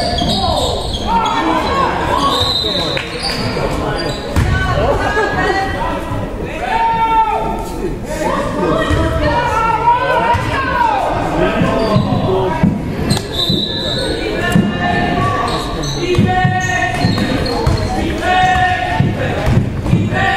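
Young men shout to each other across a large echoing gym.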